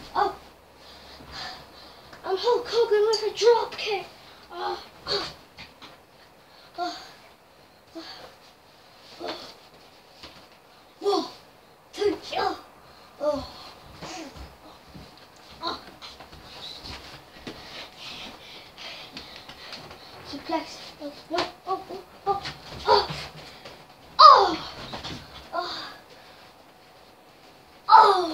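Feet thump on a soft mattress.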